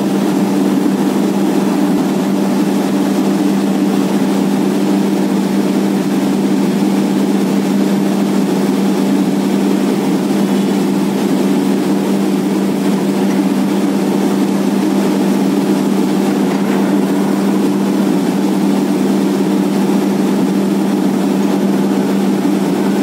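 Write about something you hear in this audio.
Muddy water gushes out of a borehole and splashes onto wet ground.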